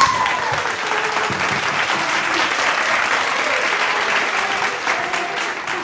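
A young girl claps her hands.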